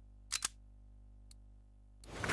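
Menu clicks sound in a game.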